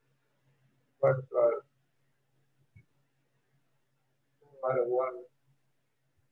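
An elderly man speaks briefly and calmly through a microphone.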